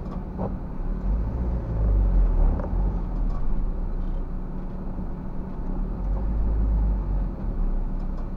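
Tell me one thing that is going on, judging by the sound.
A car engine rumbles louder as the car pulls away.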